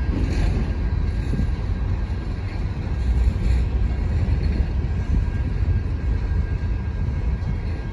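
Freight wagons rumble and clatter steadily along the rails close by.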